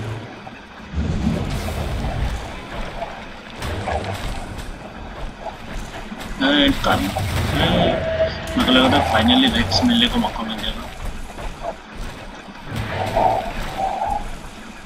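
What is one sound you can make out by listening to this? Deep booming blasts rumble again and again.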